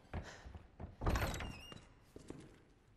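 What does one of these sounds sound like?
A wooden door creaks open.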